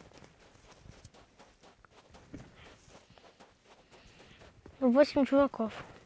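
Footsteps crunch softly on dry dirt.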